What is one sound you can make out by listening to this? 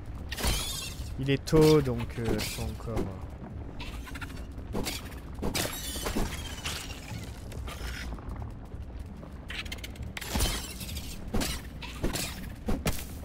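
A blade slashes into a creature again and again with sharp, wet thuds.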